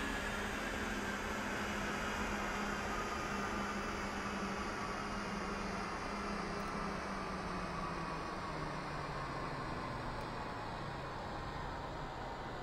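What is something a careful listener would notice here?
A jet's twin turbofan engines whine.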